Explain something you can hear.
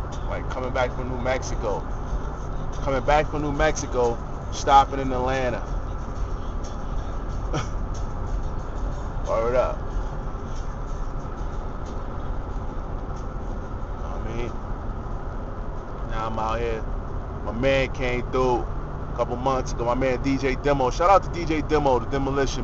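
A man talks casually and close by, in bursts with pauses.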